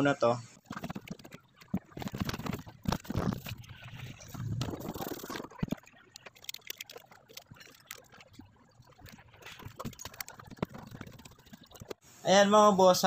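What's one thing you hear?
Plastic parts click and rattle as hands handle them.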